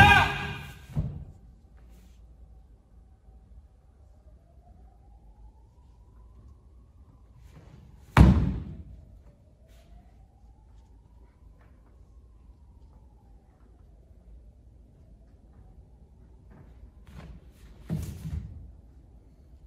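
Feet stamp and a uniform snaps with sudden thuds.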